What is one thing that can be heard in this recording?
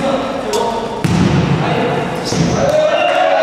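A volleyball is struck with sharp slaps in an echoing hall.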